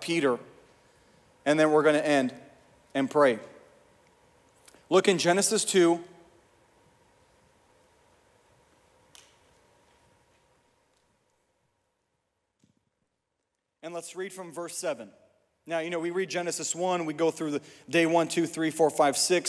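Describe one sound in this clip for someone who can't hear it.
A young man speaks calmly into a microphone, heard through loudspeakers in a large echoing hall.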